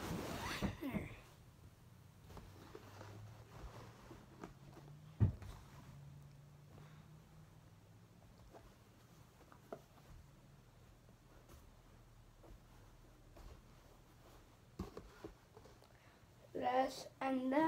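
Fabric rustles as hats are handled and set down.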